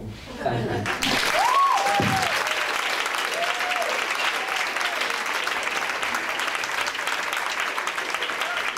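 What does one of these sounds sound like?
An audience laughs and applauds loudly.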